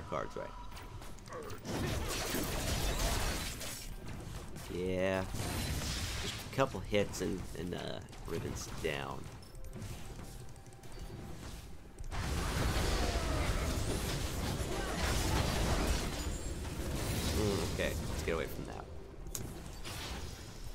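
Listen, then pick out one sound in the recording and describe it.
Spells whoosh and crackle as game characters fight.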